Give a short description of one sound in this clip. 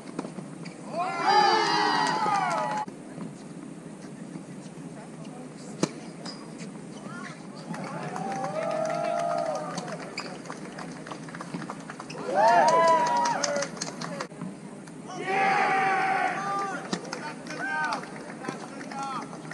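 Men call out and talk across the court.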